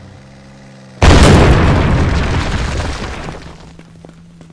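A heavy thump sounds as a figure lands hard on the ground, with a rumble that slowly fades.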